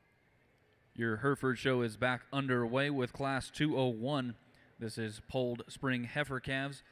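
A man speaks calmly and steadily through a loudspeaker microphone.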